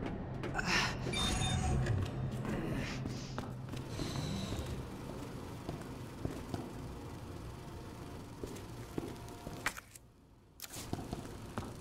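Heavy boots tread on a hard floor.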